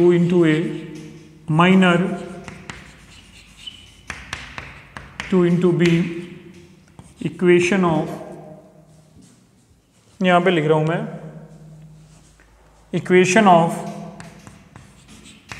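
A man speaks clearly, in short bursts with pauses.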